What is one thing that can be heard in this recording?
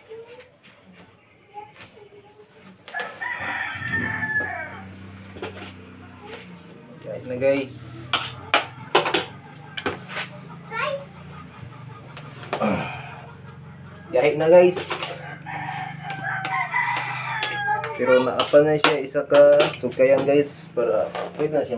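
A wooden pestle thumps and pounds into a metal pot.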